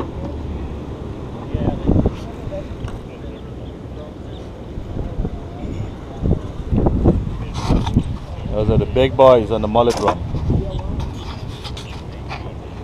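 Wind blows in gusts across the microphone outdoors.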